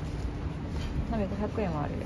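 A hand presses the pump of a sanitizer bottle.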